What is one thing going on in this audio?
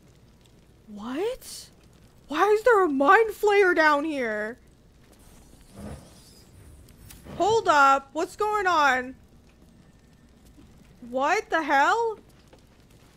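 A young woman speaks with animation into a nearby microphone.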